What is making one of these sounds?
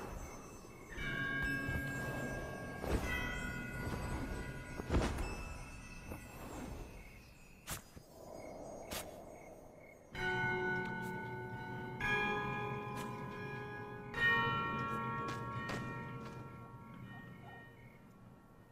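Bells chime with long ringing tones.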